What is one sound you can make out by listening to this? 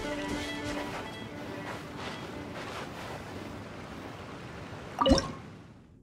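Water laps gently against a rocky shore.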